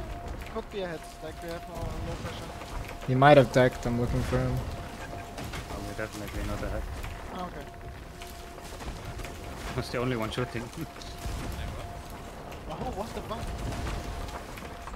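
Ocean waves wash against a wooden ship's hull.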